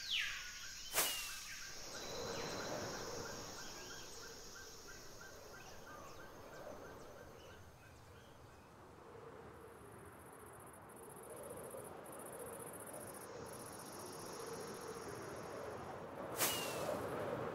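A firework rocket launches with a sharp whoosh.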